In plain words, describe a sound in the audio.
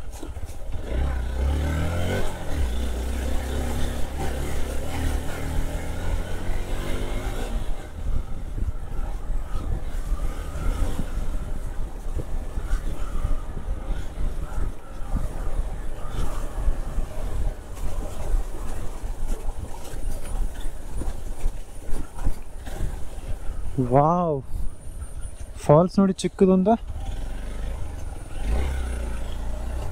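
A motorcycle engine rumbles steadily, rising and falling as the rider accelerates.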